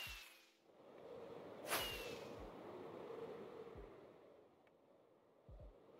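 Wind rushes past loudly during a fast glide through the air.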